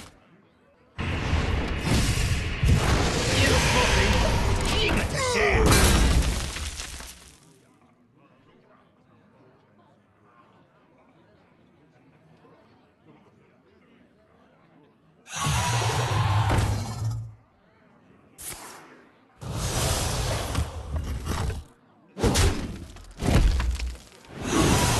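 Magical card game sound effects whoosh and chime in loud bursts.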